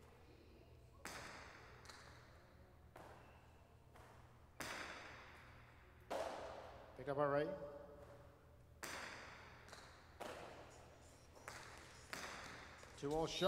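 A hard ball smacks loudly against a wall and echoes in a large hall.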